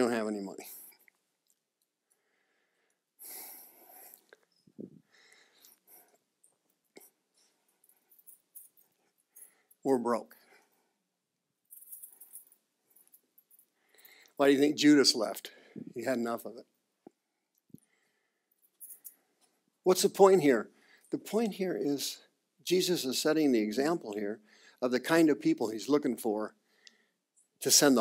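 A man speaks loudly and clearly, pausing often between phrases.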